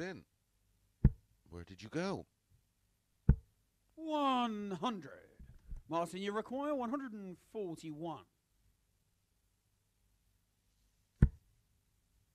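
Darts thud into a dartboard.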